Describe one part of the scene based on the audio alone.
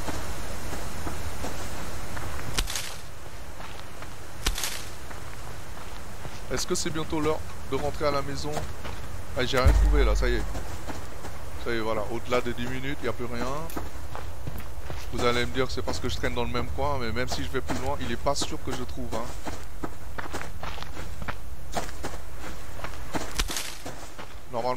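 Footsteps rustle through grass and crunch on ground.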